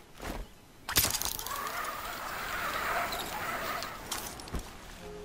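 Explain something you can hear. A rope line whirs as a person slides down it at speed.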